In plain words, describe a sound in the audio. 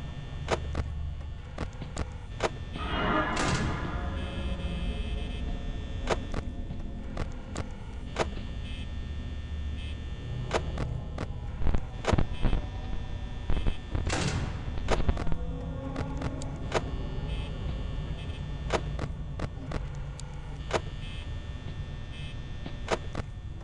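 Electronic static crackles with sharp clicks.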